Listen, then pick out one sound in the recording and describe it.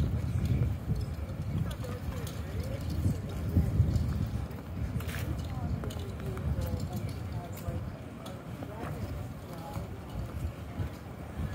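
Footsteps walk along pavement.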